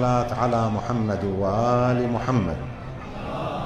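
An elderly man chants in a drawn-out, mournful voice through a microphone and loudspeakers in a large echoing hall.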